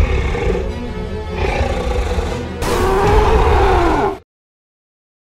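A dinosaur roars loudly and deeply.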